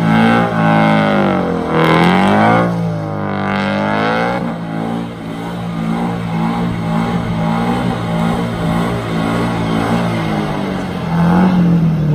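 A car engine revs hard and bounces off the rev limiter.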